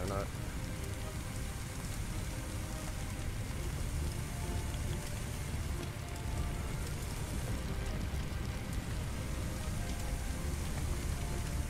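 Fire roars and crackles steadily.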